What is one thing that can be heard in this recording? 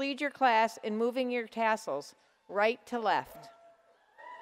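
An elderly woman speaks calmly into a microphone in a large echoing hall.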